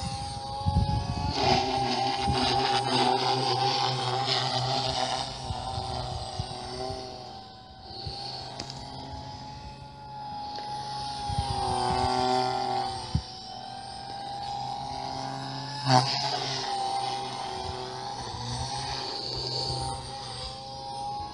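A model jet plane's engine whines overhead, rising and falling in pitch as it flies past.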